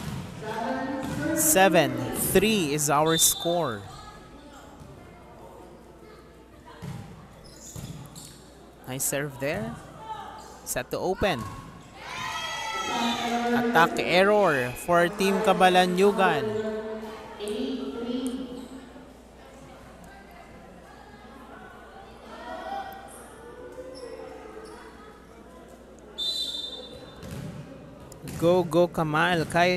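Young women shout and cheer loudly in an echoing hall.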